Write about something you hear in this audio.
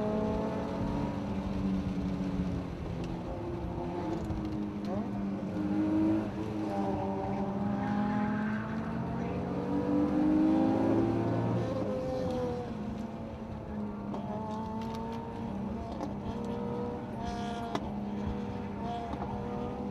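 The inline-six engine of a BMW M3 sports car rises and falls in pitch through the gears, heard from inside the cabin.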